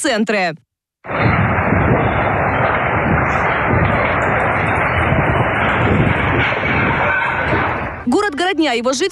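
Wind roars loudly outdoors.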